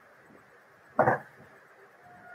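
A loud thump sounds close by.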